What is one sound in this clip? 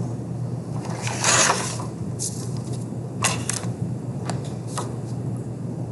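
A metal ruler slides and clatters on paper.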